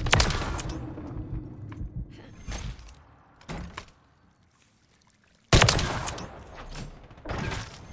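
Gunshots ring out in sharp, loud bursts.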